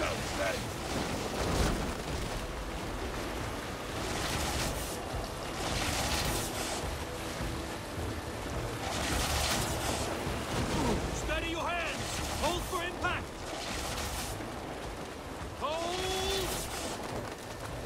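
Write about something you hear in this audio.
Fiery explosions boom nearby.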